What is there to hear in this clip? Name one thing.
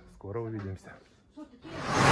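A middle-aged man speaks close to the microphone.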